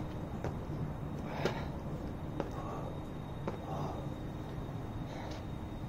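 A man's shoes thud and scuff on the ground as he jumps and lands.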